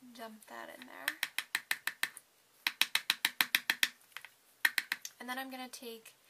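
A plastic spoon taps and scrapes against a plastic cup.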